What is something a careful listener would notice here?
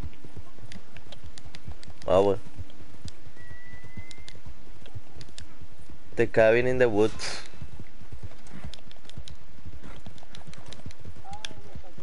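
Horse hooves clop steadily on a dirt trail.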